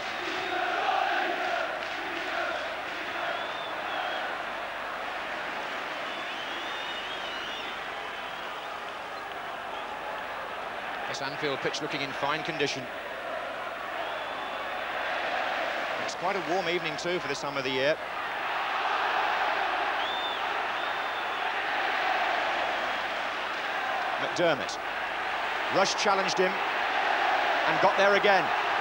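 A large crowd roars and chants steadily outdoors.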